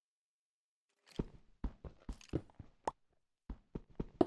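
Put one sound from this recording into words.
Food is munched with quick crunchy bites.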